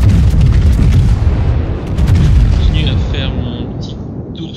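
Heavy guns fire with deep booms that rumble away.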